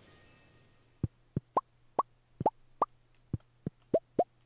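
Short pops sound as items are picked up in quick succession.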